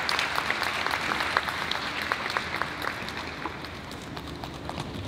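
Many drums are beaten in a fast rhythm in a large echoing hall.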